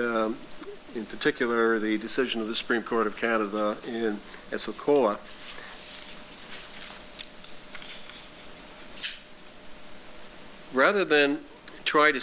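An elderly man speaks calmly through a microphone, pausing now and then.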